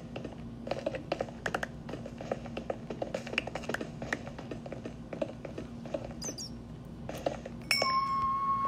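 Quick blocky crunching and tapping of stone being mined sounds over and over.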